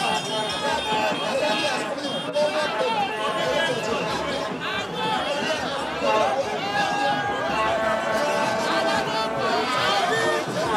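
A large crowd of men and women sings and chants loudly outdoors.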